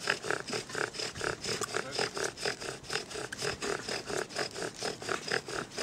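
A bow drill squeaks and whirs back and forth in a quick, steady rhythm.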